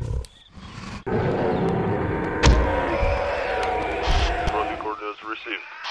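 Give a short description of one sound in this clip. A large dinosaur roars loudly.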